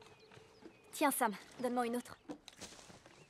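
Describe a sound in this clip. A young woman speaks softly and calmly up close.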